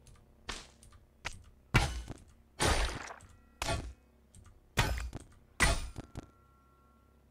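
Short video game sound effects of blows and hits sound in quick bursts.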